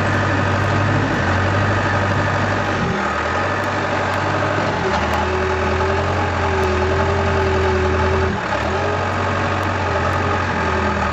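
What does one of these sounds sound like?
A diesel crawler dozer engine runs under load while pushing.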